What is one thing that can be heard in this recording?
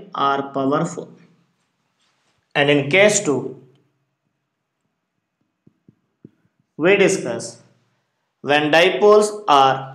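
A man speaks steadily close to a microphone, explaining.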